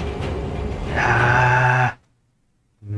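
A huge creature lets out a loud, deep roar.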